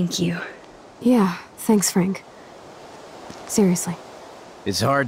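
A young woman with a husky voice answers sarcastically.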